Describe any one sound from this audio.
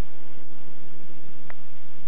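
A golf putter taps a ball softly.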